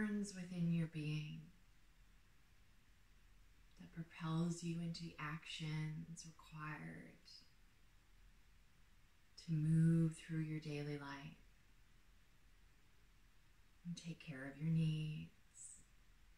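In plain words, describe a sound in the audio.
A woman speaks calmly and softly in short phrases, with long pauses.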